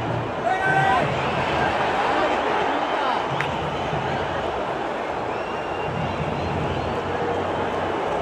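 A large stadium crowd roars and chants steadily all around.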